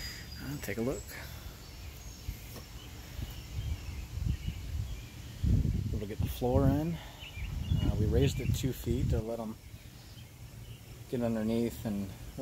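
A middle-aged man talks calmly, close by.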